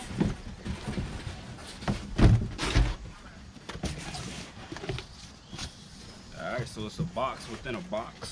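Cardboard flaps rustle and thump as a box is opened.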